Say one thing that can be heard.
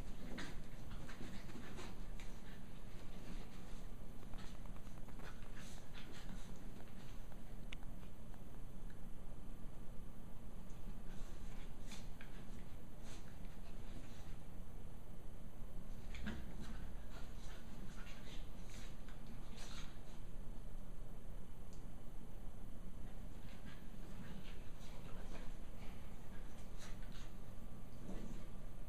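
Small paws patter and scuffle on carpet.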